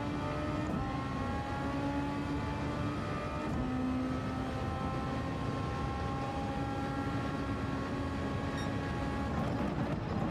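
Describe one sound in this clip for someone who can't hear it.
A racing car engine roars at high revs, dropping briefly with each gear change.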